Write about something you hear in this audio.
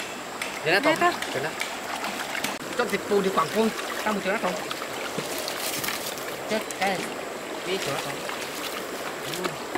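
A shallow stream flows and babbles.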